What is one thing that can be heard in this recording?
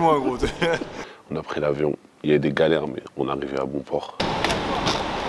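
A young man speaks calmly and laughs close by, in a quiet room.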